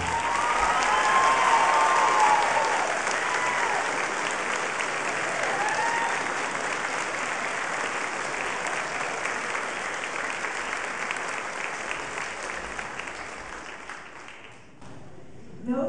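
An audience applauds loudly in a large echoing hall, then the applause fades.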